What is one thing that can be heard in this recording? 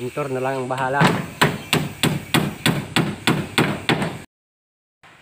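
A hammer strikes nails into wood in quick, regular blows.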